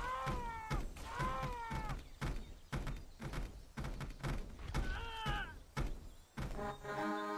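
Wooden beams crash and clatter as a tower collapses.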